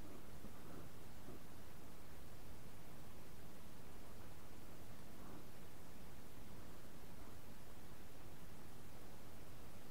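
Water laps softly against a boat hull outdoors.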